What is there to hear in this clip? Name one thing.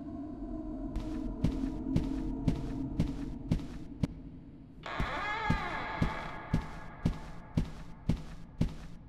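Footsteps tap at a steady walking pace on a hard floor.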